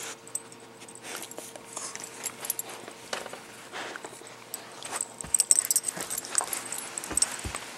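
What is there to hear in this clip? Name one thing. A dog sniffs and snuffles close by.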